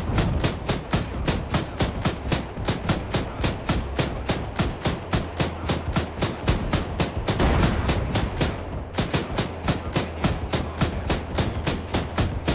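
Shells explode with loud booms.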